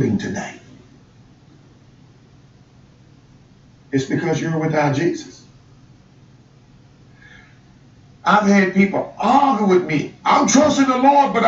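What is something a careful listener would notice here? A middle-aged man speaks calmly and earnestly through a microphone, with pauses.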